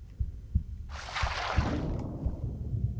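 A swimmer dives under the water with a loud splash.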